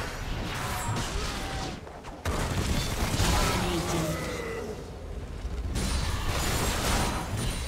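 Video game spell effects burst and crackle during a fight.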